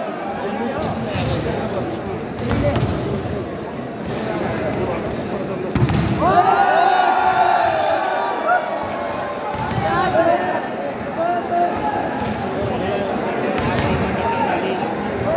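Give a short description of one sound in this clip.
A large crowd cheers and chatters in an echoing indoor hall.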